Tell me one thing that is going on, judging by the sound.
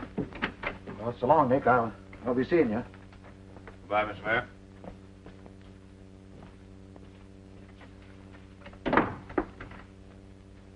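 A second man answers in a low voice.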